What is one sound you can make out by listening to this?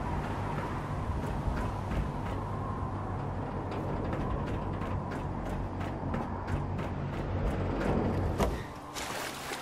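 Footsteps thud on a metal deck.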